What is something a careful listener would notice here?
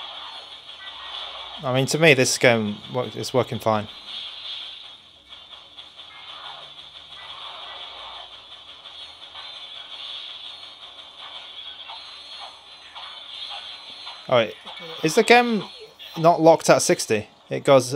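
A handheld video game plays action sound effects through a small speaker.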